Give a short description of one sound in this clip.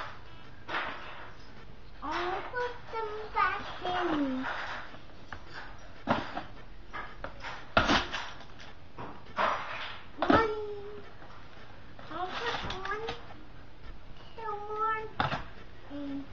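Plastic cups clack together as a child stacks them.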